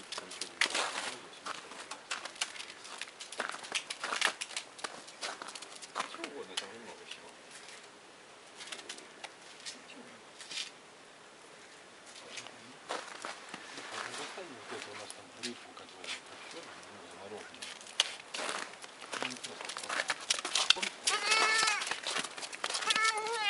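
Small hooves crunch and patter on snow.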